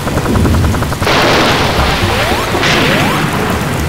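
A loud hissing whoosh bursts out as a game character curls into a spinning ball.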